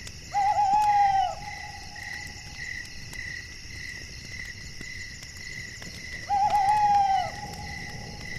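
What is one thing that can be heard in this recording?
An owl hoots twice, clear and close.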